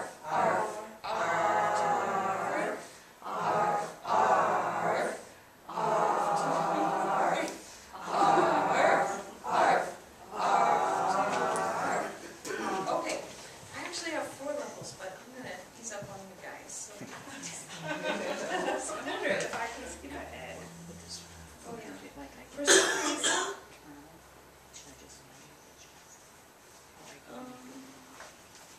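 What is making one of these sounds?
A woman speaks calmly to a small audience in a room, heard from among the listeners.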